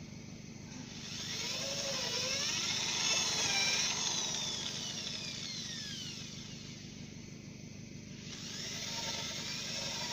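A cordless drill whirs, speeding up and slowing down as it drives screws into wood.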